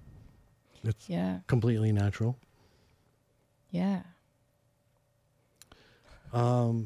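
A young woman speaks in short bursts into a close microphone.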